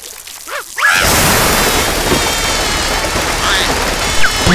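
Water sprays out hard in a loud hissing rush.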